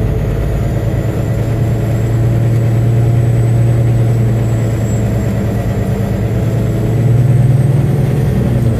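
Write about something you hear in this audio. A car engine hums steadily at a low pitch.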